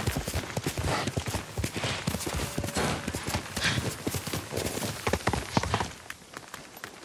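Horse hooves gallop fast over dry leaves.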